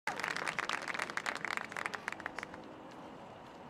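A small crowd claps and cheers outdoors, then fades.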